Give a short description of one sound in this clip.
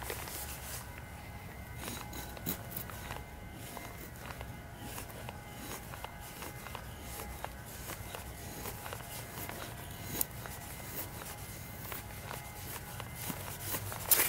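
A knife scrapes and shaves thin curls from a stick of wood.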